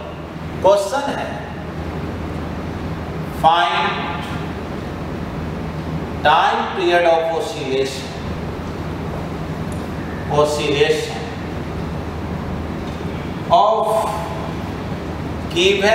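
A man speaks calmly in short phrases, close by, with a slight room echo.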